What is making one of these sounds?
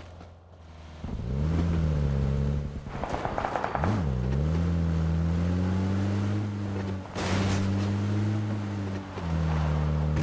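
A car engine starts and revs, rising and falling in pitch as it drives over rough ground.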